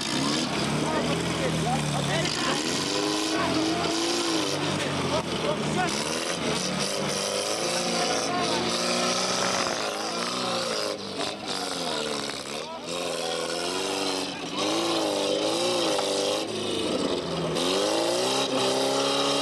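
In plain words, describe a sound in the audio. An off-road vehicle's engine revs and strains, rising and falling in pitch.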